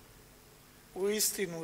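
A man chants slowly into a microphone, echoing in a large hall.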